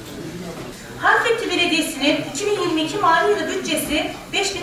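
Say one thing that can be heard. A man speaks calmly into a microphone, heard through loudspeakers.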